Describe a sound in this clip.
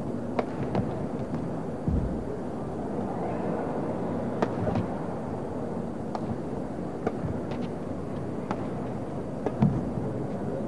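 A shuttlecock is struck sharply by rackets in a rally.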